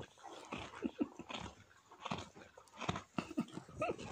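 A foal sniffs and snorts at the straw.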